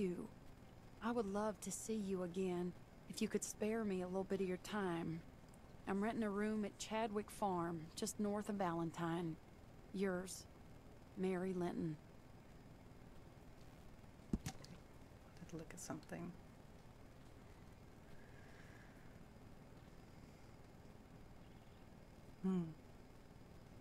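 A young woman speaks calmly into a microphone, close by.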